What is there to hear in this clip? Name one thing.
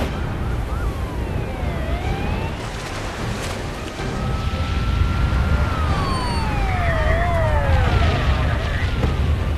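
Police sirens wail and glide up and down.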